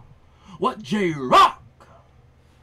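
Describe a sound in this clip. A young man sings out loudly in a short burst.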